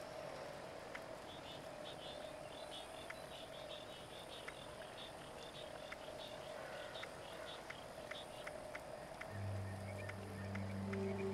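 Soft menu clicks tick at a steady pace.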